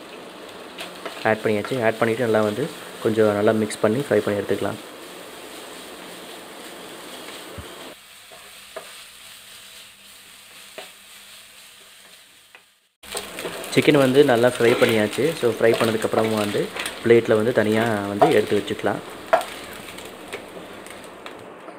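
A wooden spatula scrapes and stirs food in a frying pan.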